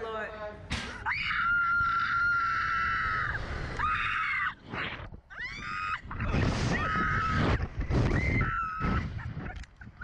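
A young woman screams shrilly.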